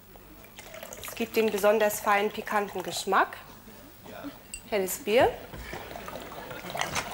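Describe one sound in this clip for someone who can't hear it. Liquid pours from a bottle into a jug.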